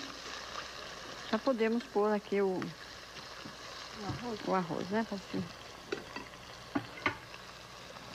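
A spoon clinks against a metal pot.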